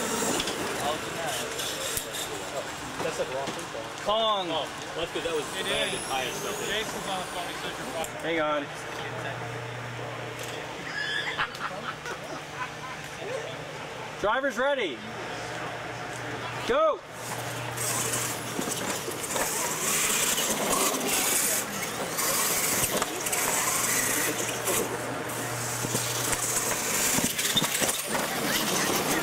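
Tyres of small trucks skid and scatter gravel.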